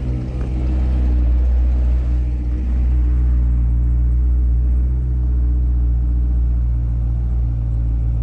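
Tyres roll slowly over snow.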